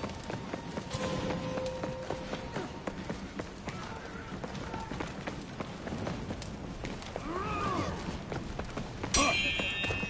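Armoured footsteps thud on stone.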